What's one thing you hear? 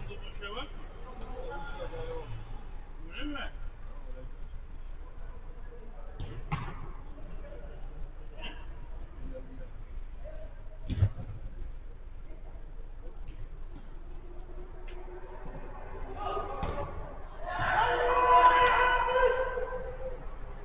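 Men shout to each other in a large echoing hall, far off.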